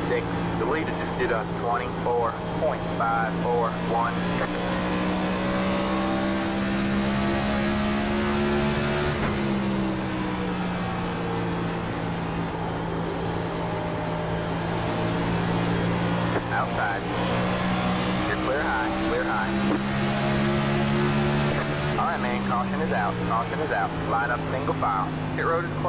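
A race car engine drones steadily at high speed, its pitch dipping briefly now and then.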